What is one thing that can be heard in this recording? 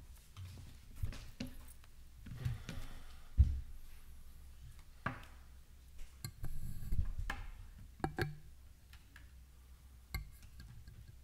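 A microphone thumps and knocks as it is handled.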